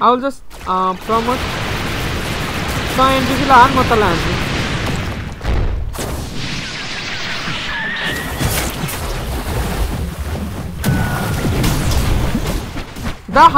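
Game sound effects of blasts and slashes whoosh and boom throughout.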